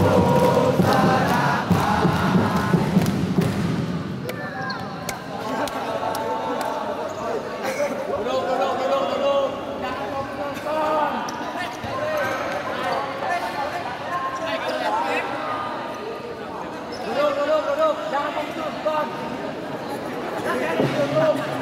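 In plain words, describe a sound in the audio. Young men talk and call out nearby in an echoing hall.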